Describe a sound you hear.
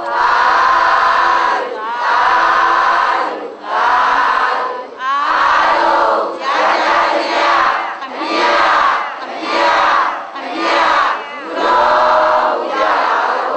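A large crowd chants a prayer together in unison.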